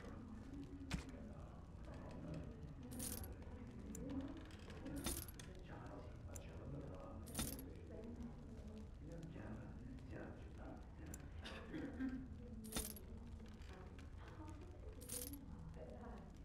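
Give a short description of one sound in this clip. Short game menu chimes and coin jingles sound now and then.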